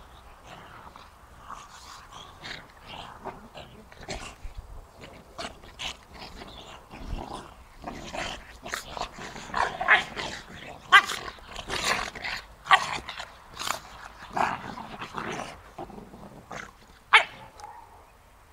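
Two dogs growl and snarl as they wrestle playfully.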